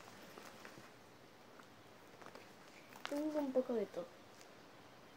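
A fabric pencil case rustles as it is handled.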